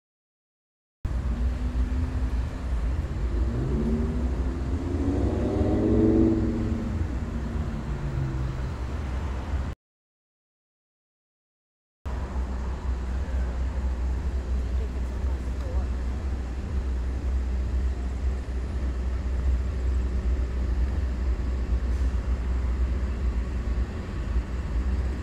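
Traffic rumbles along a nearby street outdoors.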